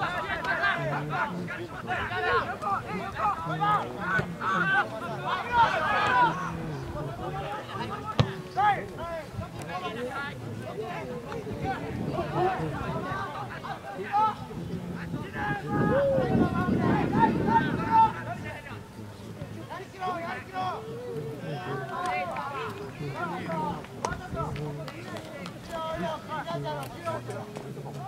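Players shout to each other across an open field outdoors.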